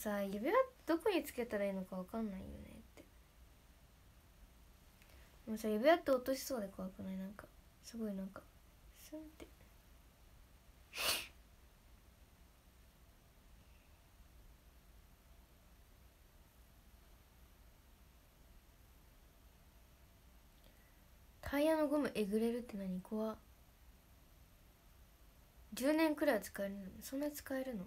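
A young woman speaks softly and close to a microphone, in short bursts with pauses.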